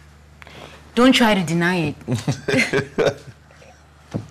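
A young woman speaks playfully up close.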